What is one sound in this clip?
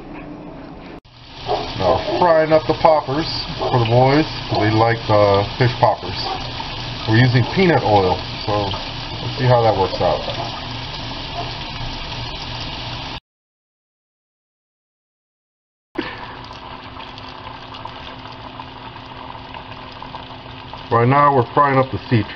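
Oil sizzles and bubbles steadily in a frying pan.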